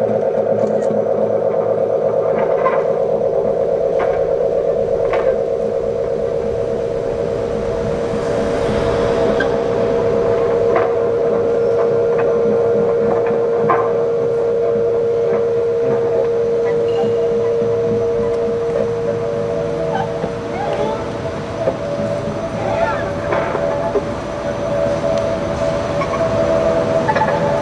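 An acoustic guitar is plucked.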